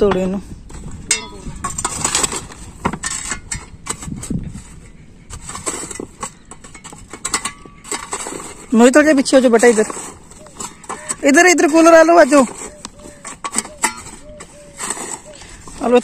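A shovel scrapes over gravel and rubble.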